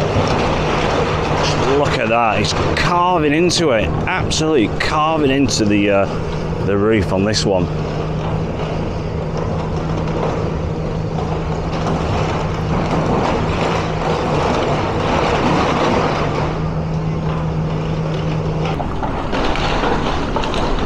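Rubble crashes and clatters as a building is torn down.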